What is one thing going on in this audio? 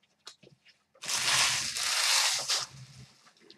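A deck of playing cards is riffled and shuffled with a quick whirring flutter.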